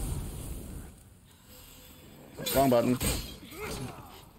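Swords clash and clang.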